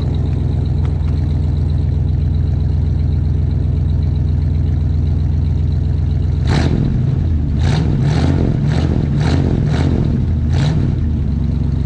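A car engine idles with a deep, steady exhaust rumble close by.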